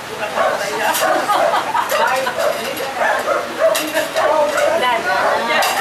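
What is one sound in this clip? Several men and women chatter and talk over one another close by.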